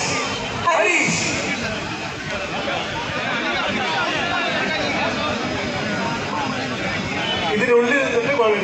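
A large crowd of men chatters loudly outdoors.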